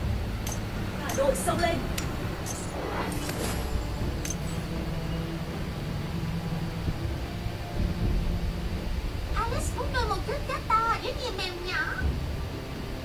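A young woman talks into a nearby microphone in short bursts.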